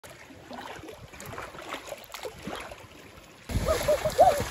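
Shallow water ripples and laps gently.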